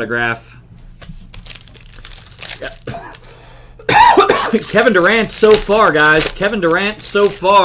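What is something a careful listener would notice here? Plastic wrapping crinkles as cards are handled.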